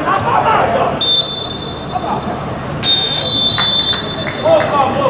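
A referee's whistle blows in sharp blasts.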